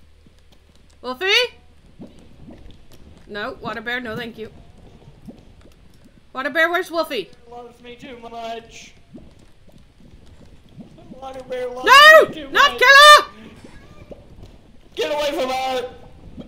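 A young woman talks with animation into a microphone, her voice rising high at times.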